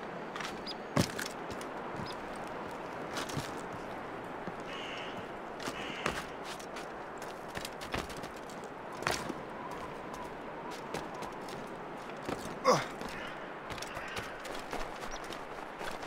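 Hands and feet scrape and thud against rock as a climber scrambles up a cliff.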